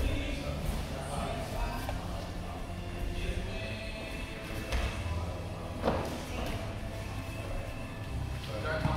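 Bodies shuffle and thump on a padded mat.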